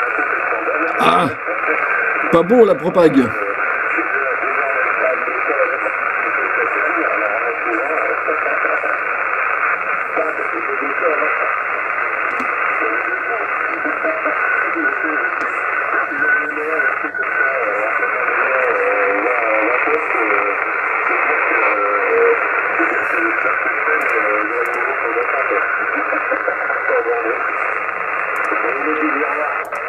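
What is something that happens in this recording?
A radio receiver hisses and warbles with static through a small laptop speaker.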